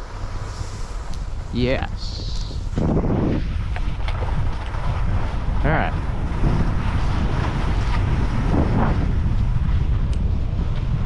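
Skis scrape and hiss over snow.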